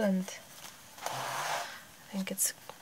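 A page of paper rustles as it is turned.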